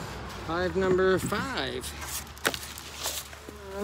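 A wooden lid scrapes and knocks as it is lifted off a box.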